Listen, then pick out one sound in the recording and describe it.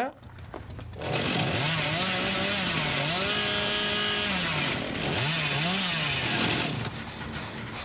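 A chainsaw engine revs loudly and roars.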